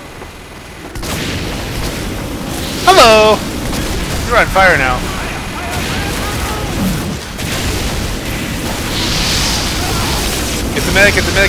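A flamethrower roars in short bursts.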